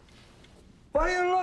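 A middle-aged man speaks up suddenly.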